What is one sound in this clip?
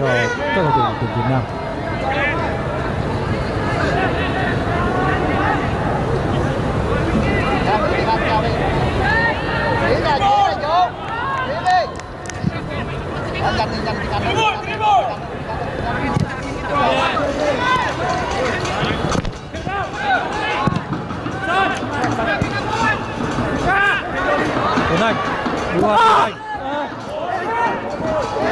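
A stadium crowd chants and cheers steadily in a large open space.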